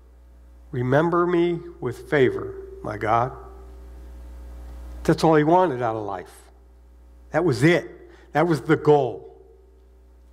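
A man speaks slowly and clearly through a microphone in an echoing hall.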